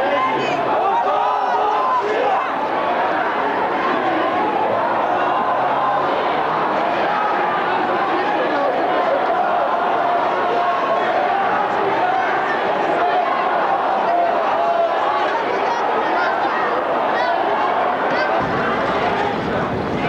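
A large crowd of men and women talks and murmurs outdoors.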